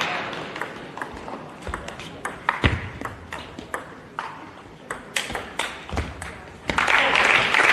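A ping-pong ball clicks back and forth between paddles and table in a large echoing hall.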